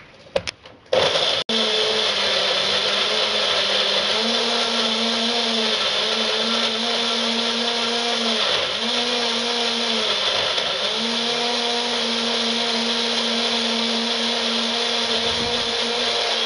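Chunks of food rattle and knock inside a blender jar.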